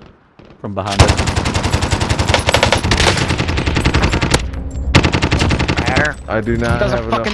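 A machine gun fires rapid bursts at close range.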